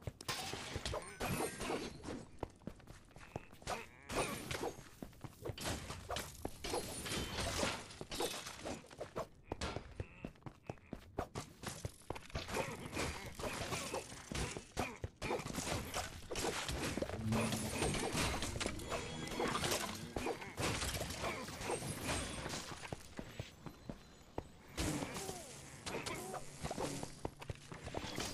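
Swords clash and strike in rapid hits of combat.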